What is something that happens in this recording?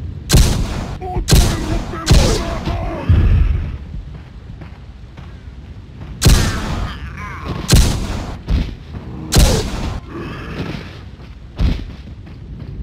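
Pistol shots ring out one after another, each echoing briefly.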